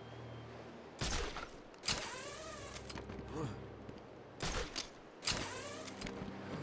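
Wind whooshes loudly in sudden bursts.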